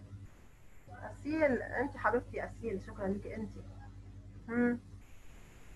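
A young woman speaks calmly into a headset microphone, heard as if over an online call.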